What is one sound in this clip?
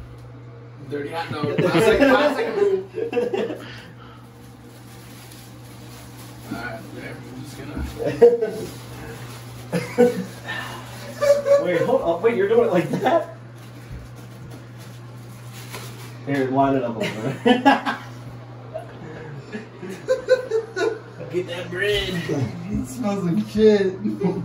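Young men talk and laugh with animation close by.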